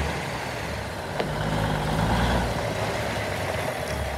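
Truck tyres crunch slowly over gravel.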